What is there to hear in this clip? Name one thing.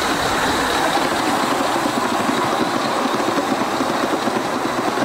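A model train rumbles and clicks steadily along its rails.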